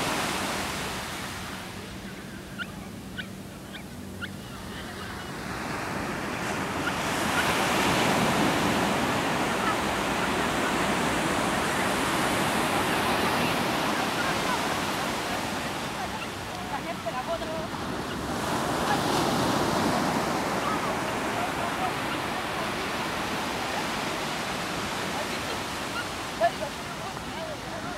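Waves wash onto the shore nearby.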